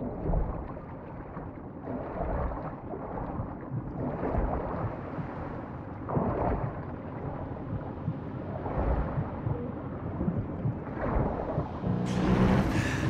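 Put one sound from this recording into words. Water churns and bubbles in a muffled underwater rumble.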